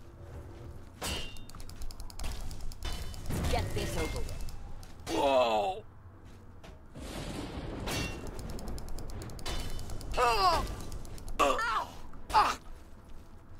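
Swords clash with sharp metallic strikes.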